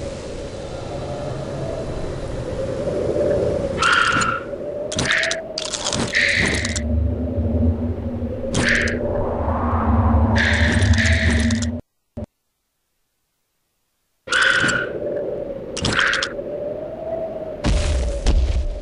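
Eerie background music drones steadily.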